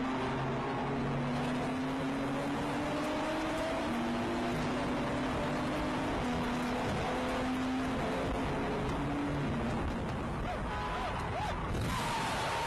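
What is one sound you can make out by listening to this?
A car engine roars loudly at high speed, its pitch rising and falling as the gears change.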